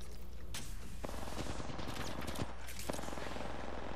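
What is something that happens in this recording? A medical syringe hisses as it is used.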